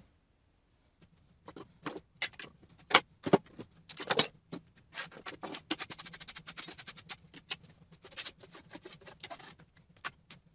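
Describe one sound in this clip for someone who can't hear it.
Tools clatter and knock on a wooden tabletop.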